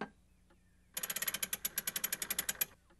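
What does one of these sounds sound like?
A gramophone crank is wound, its ratchet clicking rapidly.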